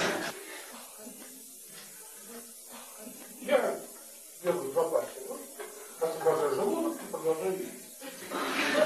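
An elderly man speaks calmly and warmly close by.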